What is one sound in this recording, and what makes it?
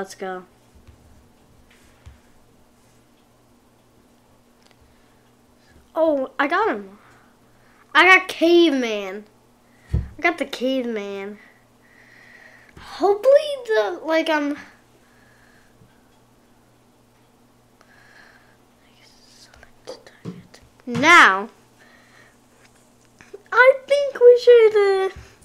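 A young boy talks with animation into a nearby microphone, in short bursts with pauses.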